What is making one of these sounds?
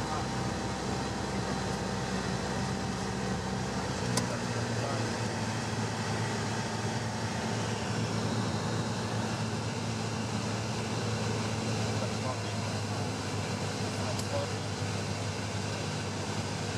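A small plane's propeller engine drones loudly and steadily.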